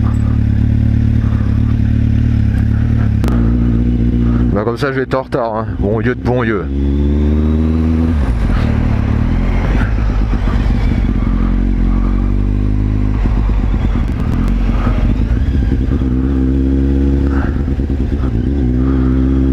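A motorcycle engine hums steadily and revs up and down.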